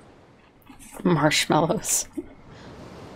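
A young woman speaks briefly and with animation, close by.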